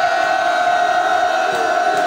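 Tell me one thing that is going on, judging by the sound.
A large crowd chants and cheers loudly.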